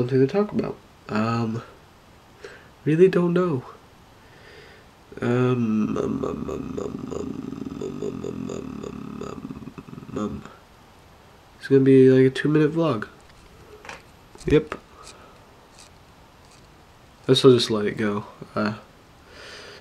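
A young man speaks casually and close to the microphone, with pauses.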